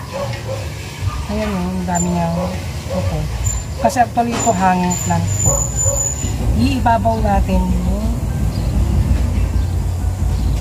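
Leaves rustle as a plant is handled.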